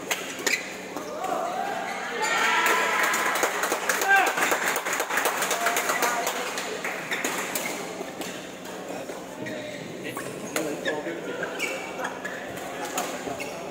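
Young men talk and call out with animation nearby in an echoing hall.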